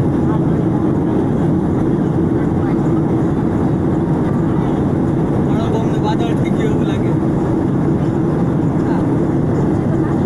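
An aircraft cabin hums with a steady, low engine roar.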